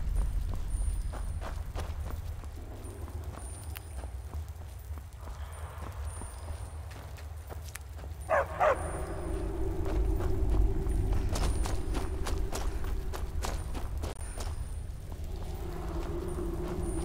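A magical flame crackles and hums steadily close by.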